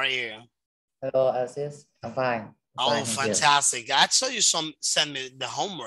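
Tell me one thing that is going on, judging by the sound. A young man talks and laughs over an online call.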